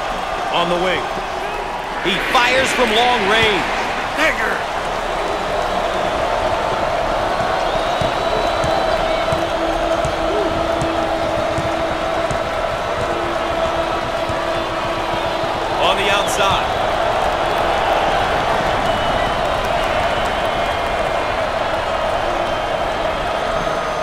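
A large crowd murmurs and roars steadily in an echoing arena.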